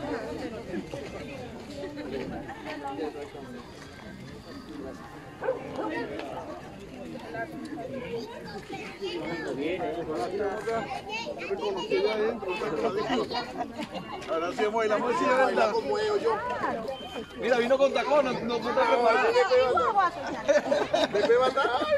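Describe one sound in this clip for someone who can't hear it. A group of adults chat and laugh close by, outdoors.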